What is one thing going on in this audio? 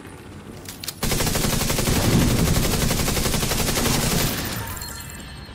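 Automatic gunfire rattles rapidly and loudly.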